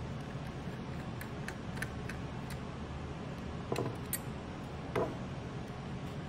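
Small metal parts click and clatter as hands handle a computer's insides.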